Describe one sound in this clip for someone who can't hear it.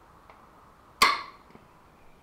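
Locking pliers snap open with a sharp metallic click.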